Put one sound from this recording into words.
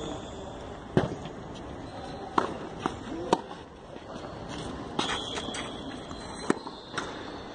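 A tennis racket strikes a ball in a rally.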